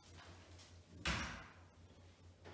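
A door closes with a soft thud.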